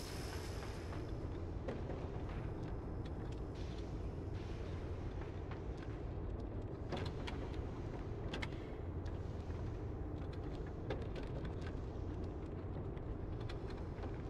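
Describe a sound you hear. A small wheeled cart rolls and rumbles along a floor.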